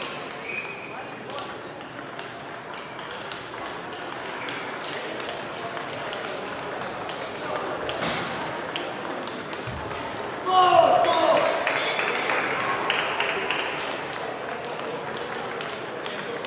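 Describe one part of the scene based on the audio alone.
A crowd of players murmurs and calls out in the distance.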